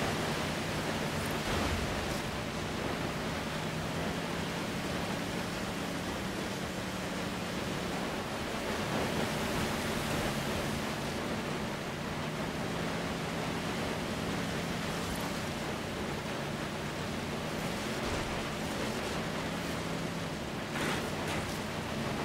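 Tyres rumble and crunch over dirt.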